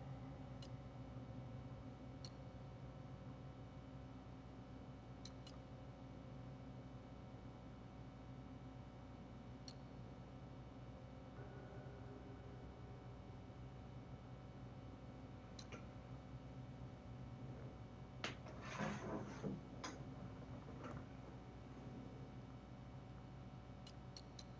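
Soft menu clicks tick now and then as selections change.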